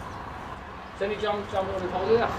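An elderly man speaks close by.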